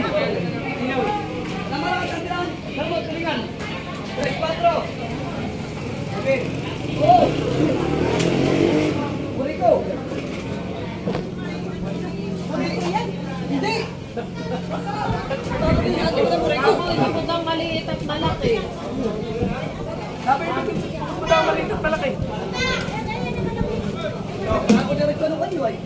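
Adults talk and call out nearby in a busy open-air space.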